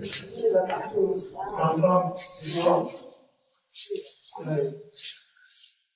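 A man speaks calmly indoors, close by.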